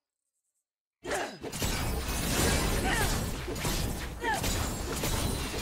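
Game spell effects and attacks crackle and boom in a busy fight.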